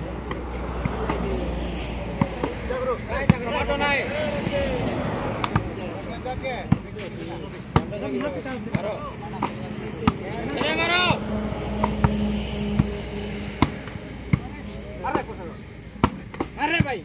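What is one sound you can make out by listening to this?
Young men shout and call out outdoors during play.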